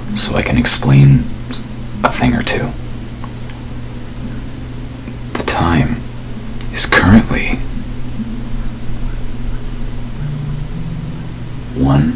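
A young man speaks casually and close into a microphone, in short bursts.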